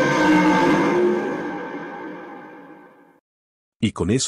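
A monster lets out a deep, loud roar that fades away.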